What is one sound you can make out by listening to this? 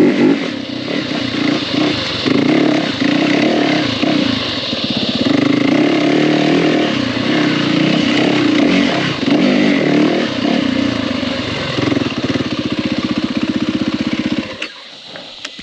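A dirt bike engine roars and revs up close.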